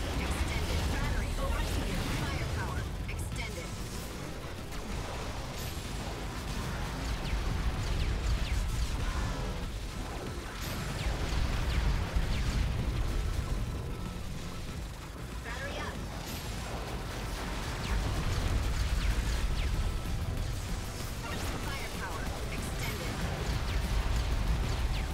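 Video game blasts and explosions crackle rapidly.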